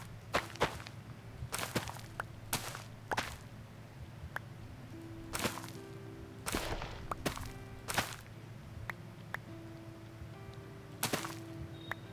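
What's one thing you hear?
Crops break with short soft crunches, again and again.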